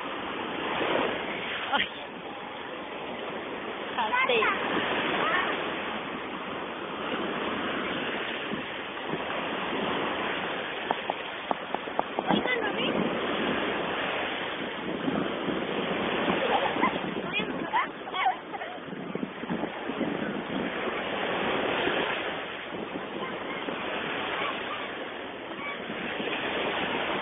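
Water splashes as a woman wades through the sea.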